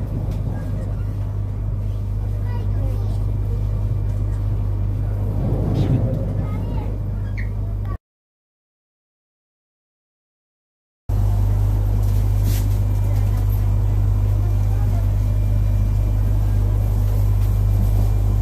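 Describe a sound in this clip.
A train rumbles steadily with a low hum.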